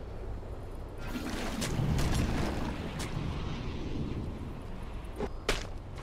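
Magic spells burst and crackle with sharp impacts.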